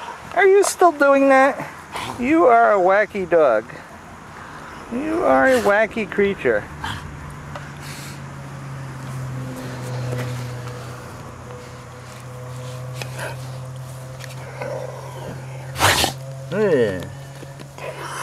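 A dog's body rubs and rustles on grass.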